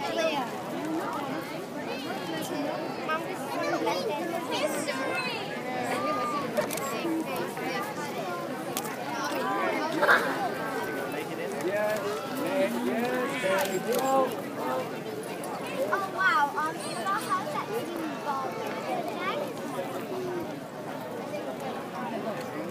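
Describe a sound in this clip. People in a crowd whistle and shout.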